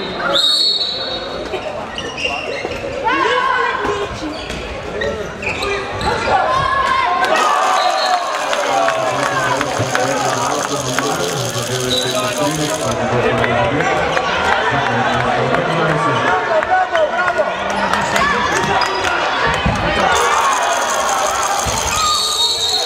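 A crowd of spectators chatters and calls out in an echoing hall.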